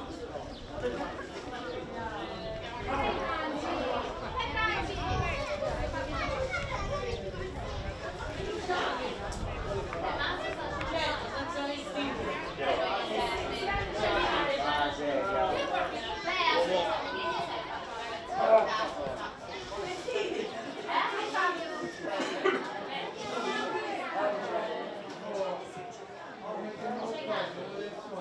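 Children shout to each other across an open field.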